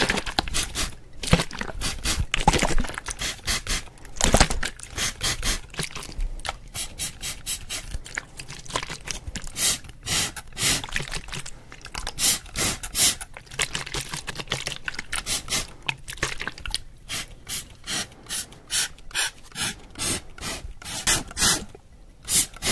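A spray bottle sprays in quick hissing bursts close to a microphone.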